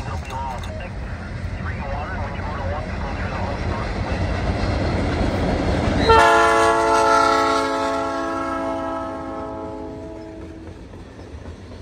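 A diesel locomotive rumbles loudly as it approaches and passes.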